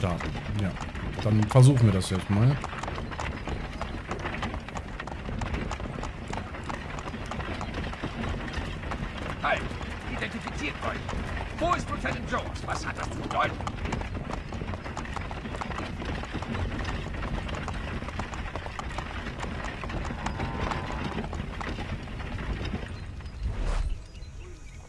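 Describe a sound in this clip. A horse-drawn wagon rumbles steadily over a dirt road.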